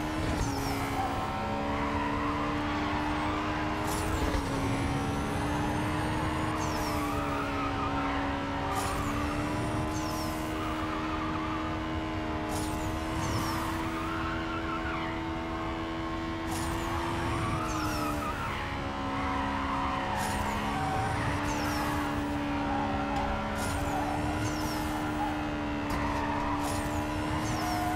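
A racing car engine roars at high revs, rising and falling in pitch as it shifts gears.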